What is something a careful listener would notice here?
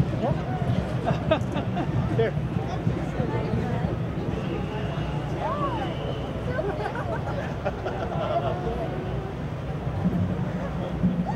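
A crowd of men and women chatters and laughs outdoors.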